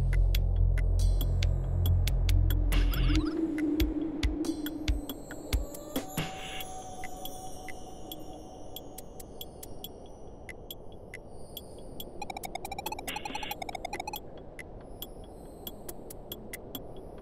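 Quick soft electronic blips tick in a rapid series.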